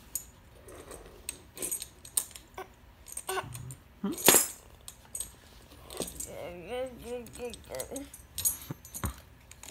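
A tambourine jingles and rattles in short bursts.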